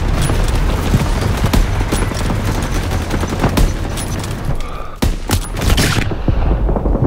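Rifle shots crack sharply.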